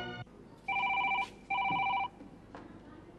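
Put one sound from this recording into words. A telephone rings twice.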